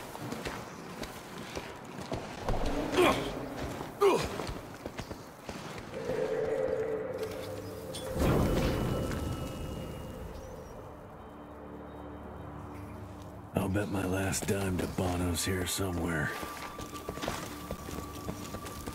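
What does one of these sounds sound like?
Footsteps scrape and crunch on rocky ground.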